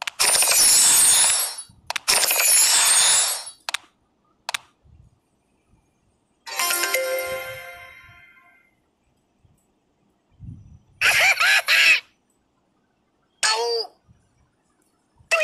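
Electronic game sound effects play in short, bright bursts.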